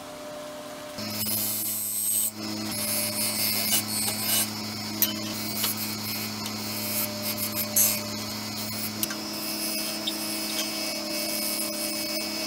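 A gouge scrapes and hisses against spinning wood.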